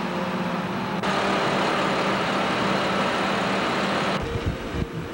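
A car drives past on a street nearby.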